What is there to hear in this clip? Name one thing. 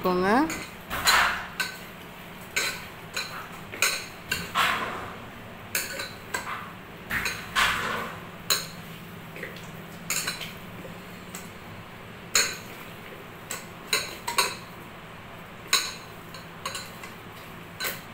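Soft knocks sound against a metal pot.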